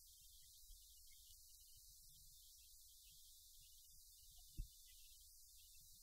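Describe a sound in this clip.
A paper sheet rustles in a hand.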